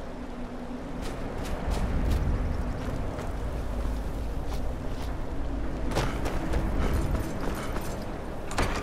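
Footsteps crunch on stone.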